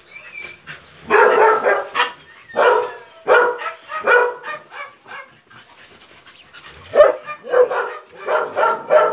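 Dogs bark in short bursts.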